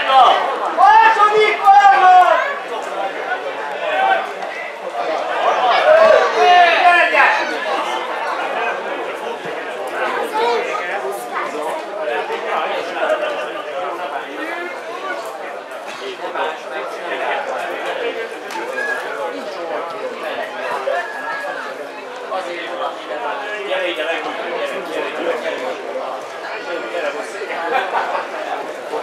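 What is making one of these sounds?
Men shout to one another across an open outdoor field.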